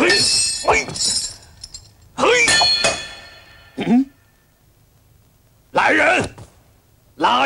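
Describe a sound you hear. A man speaks forcefully in short, dramatic bursts.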